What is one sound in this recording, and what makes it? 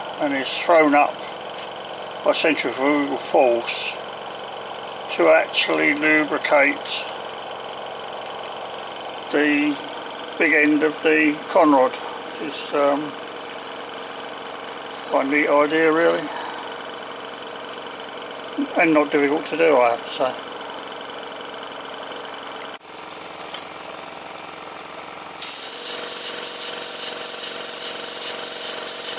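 A small steam engine runs with a steady, quiet mechanical chugging.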